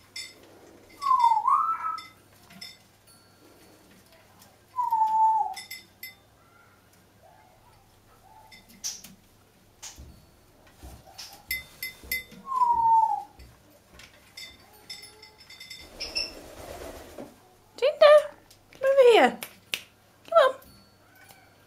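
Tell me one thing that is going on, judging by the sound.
A parrot whistles and squawks up close.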